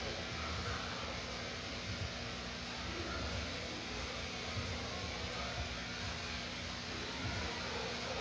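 Electric clippers buzz through thick dog fur.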